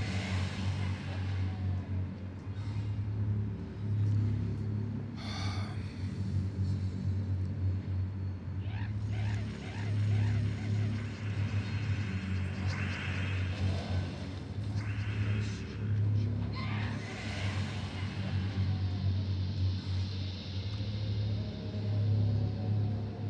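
Music with a steady deep pulsing beat plays throughout.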